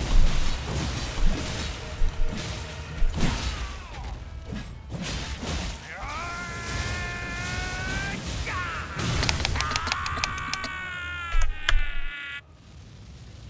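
Weapons clash and strike with heavy blows.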